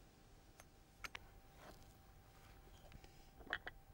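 Stones knock together as they are set down.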